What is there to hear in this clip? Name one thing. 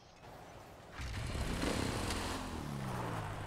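A motorbike engine hums.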